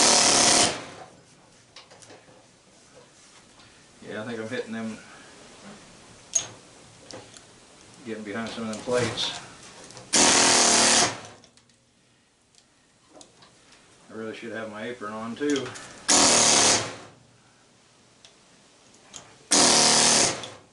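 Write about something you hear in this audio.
An air chisel hammers in short, loud bursts.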